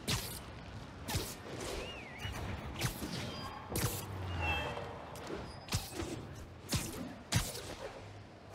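Webs shoot out with sharp, snapping whooshes, again and again.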